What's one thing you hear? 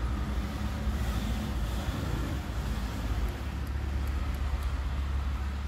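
A film soundtrack plays through car speakers.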